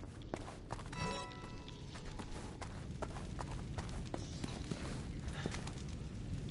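Footsteps tread on a stone floor in an echoing space.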